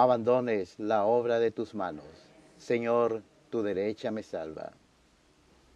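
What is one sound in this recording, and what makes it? A man reads out calmly through a microphone in an echoing hall.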